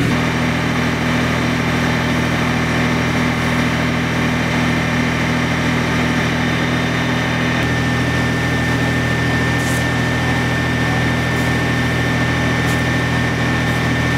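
Burning timber crackles and pops now and then.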